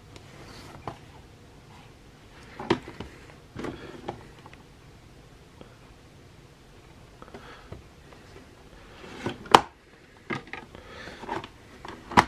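Plastic cases tap and clatter as they are handled close by.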